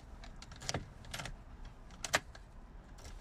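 A key clicks and rattles in a car's ignition.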